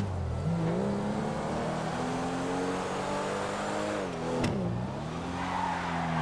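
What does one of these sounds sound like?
A car engine roars, revving up and down as the car shifts gears.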